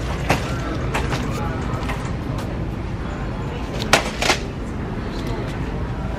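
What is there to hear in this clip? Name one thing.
Plastic cups knock and rattle as a hand handles them.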